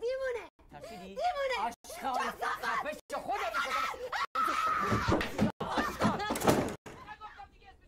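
A woman shouts back in distress.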